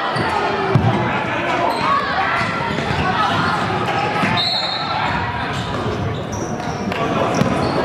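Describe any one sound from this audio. A crowd cheers and talks loudly in a large echoing gym.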